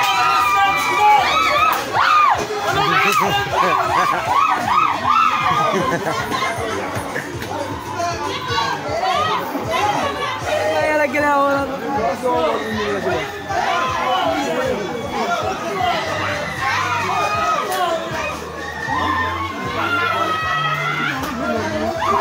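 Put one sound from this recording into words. Several men shout and argue excitedly in a crowd nearby.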